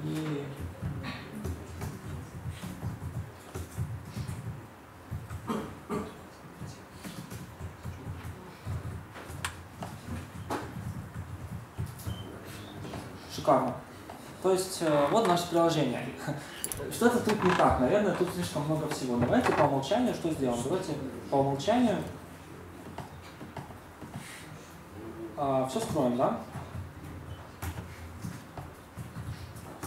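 Laptop keys click as someone types.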